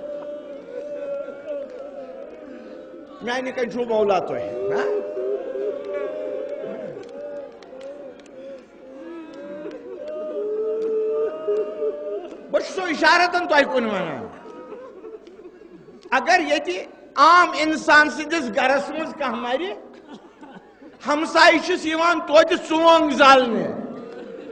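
An elderly man recites loudly and passionately through a microphone, in an echoing hall.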